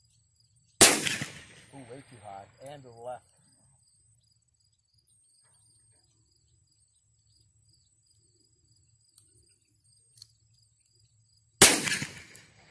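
A pistol fires loud single shots outdoors, with a sharp echo.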